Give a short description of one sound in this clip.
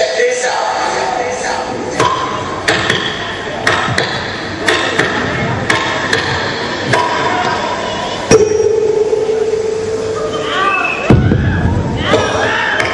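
Music with a steady beat plays loudly through loudspeakers in a large hall.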